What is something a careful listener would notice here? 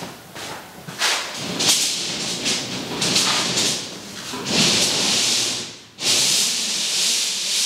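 A spray gun hisses in bursts against a wall.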